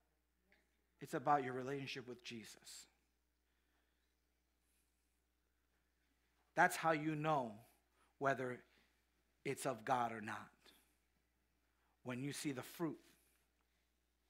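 A man speaks with animation through a microphone in a large hall, pausing between phrases.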